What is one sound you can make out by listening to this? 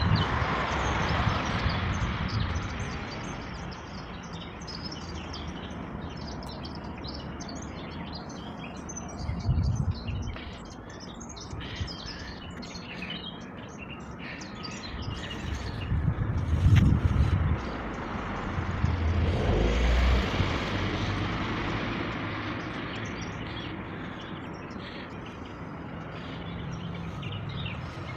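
Construction machinery rumbles steadily in the distance.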